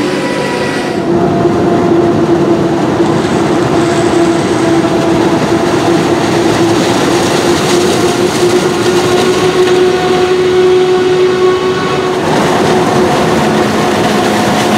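A forage harvester's engine roars loudly.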